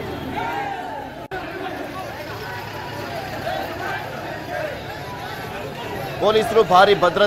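A crowd of people talk and shout at once outdoors.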